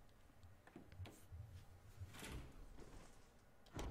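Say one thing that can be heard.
A heavy door creaks open.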